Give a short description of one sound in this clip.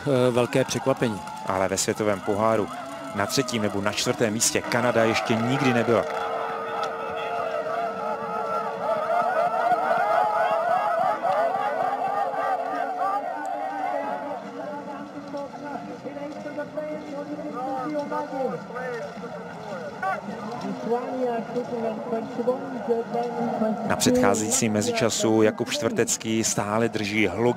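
A crowd cheers and shouts loudly outdoors.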